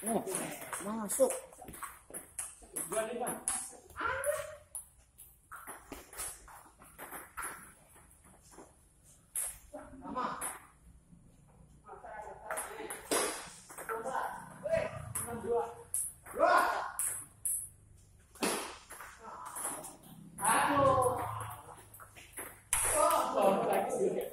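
Ping pong balls click against paddles and a table in quick rallies.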